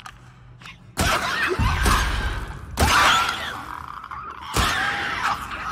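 Gunshots bang loudly in a game.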